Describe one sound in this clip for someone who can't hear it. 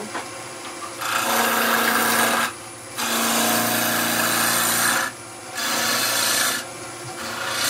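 A chisel scrapes against spinning wood in loud, rasping bursts.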